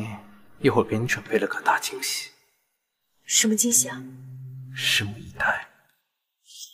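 A young man speaks calmly and closely.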